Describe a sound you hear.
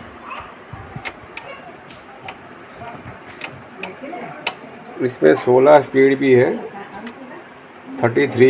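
A turntable knob clicks as it is turned.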